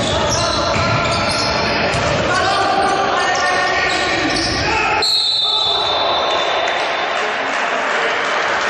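Men shout and call out across an echoing gym.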